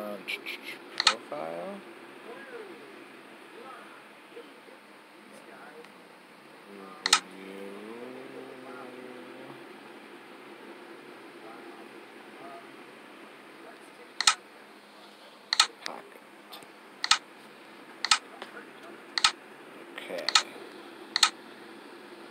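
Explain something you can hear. Short sharp clicks sound as menu buttons are pressed.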